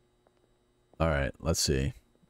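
A young man speaks loudly and with animation into a close microphone.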